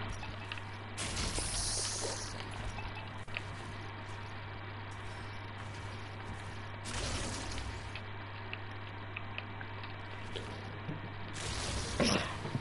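Video game sound effects whoosh and thump in short bursts.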